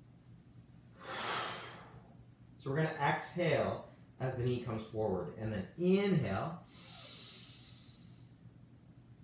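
A young man breathes out heavily while exercising.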